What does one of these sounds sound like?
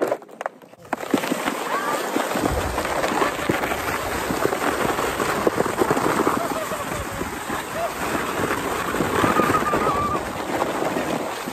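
A plastic sled scrapes and rushes over snow.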